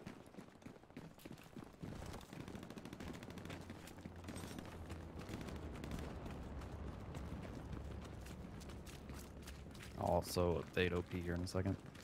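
Footsteps crunch on rubble and gravel.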